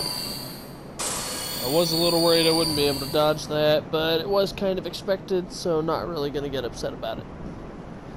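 A shimmering magical chime rings out.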